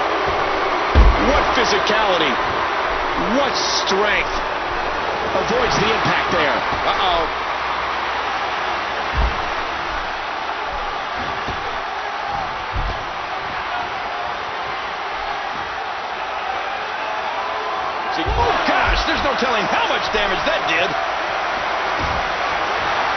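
Bodies thud heavily onto a wrestling mat.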